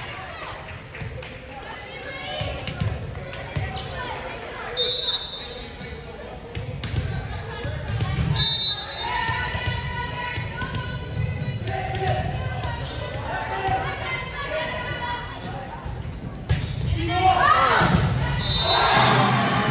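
Young women players call out and shout to each other across the court.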